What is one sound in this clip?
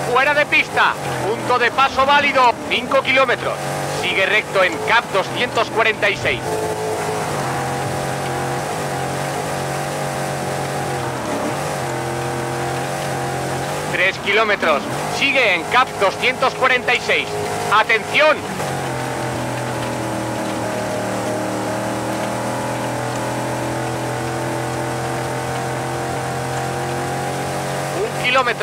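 A rally car engine roars steadily at high speed.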